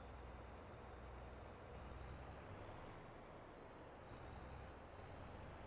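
Grain pours into a trailer with a rushing hiss.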